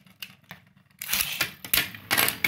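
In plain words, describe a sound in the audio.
A ripcord launcher whirs as a top is released.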